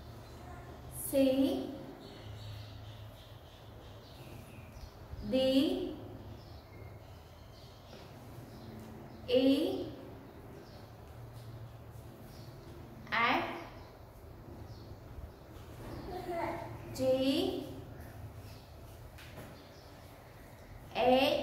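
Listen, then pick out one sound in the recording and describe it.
A young woman speaks slowly and clearly close by, saying short words one at a time with pauses between.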